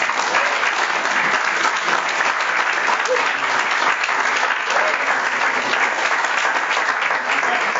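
A group of people clap their hands in an echoing hall.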